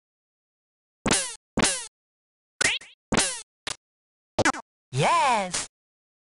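Short electronic blips and sweeping chirps sound.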